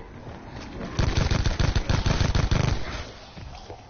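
A gun fires a rapid burst of shots.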